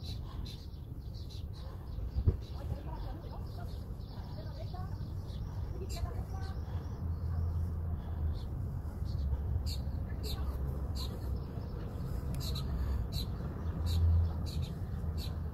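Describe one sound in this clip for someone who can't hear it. Fingers fiddle with a small metal part, making faint clicks.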